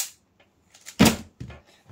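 A hand slaps down on a timer pad.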